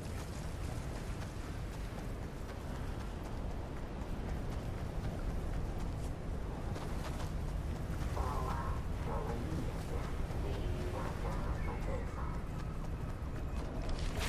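Footsteps run on hard ground.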